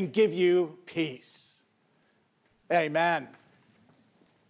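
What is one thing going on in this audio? An elderly man sings out in a loud, drawn-out voice through a microphone in an echoing hall.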